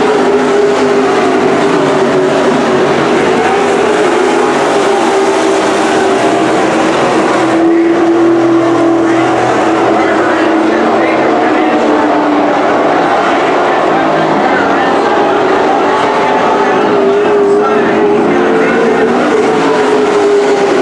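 Race car engines rise and fall in pitch as the cars pass by.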